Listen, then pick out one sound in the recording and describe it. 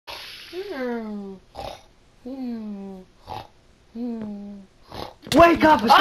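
A game villager makes short nasal grunting murmurs, again and again.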